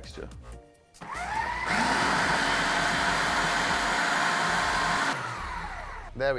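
A food processor whirs loudly, speeding up and then winding down.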